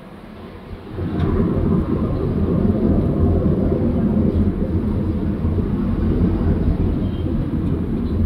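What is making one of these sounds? A truck engine rumbles loudly close ahead.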